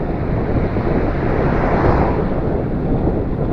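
A van drives past close by and fades.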